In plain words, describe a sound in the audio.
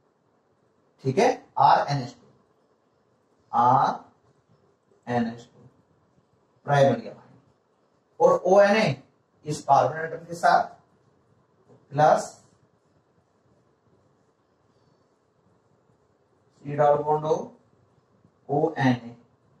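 A young man explains calmly in short bursts, close by.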